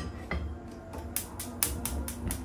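A gas stove igniter clicks rapidly.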